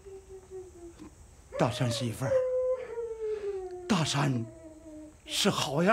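An elderly man speaks gravely, up close.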